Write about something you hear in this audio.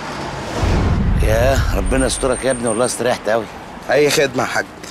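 A man talks calmly outdoors while walking.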